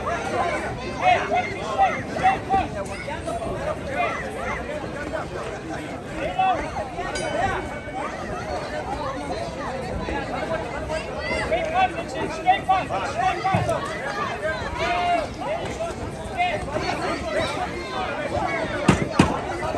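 Boxing gloves thud on a boxer's body.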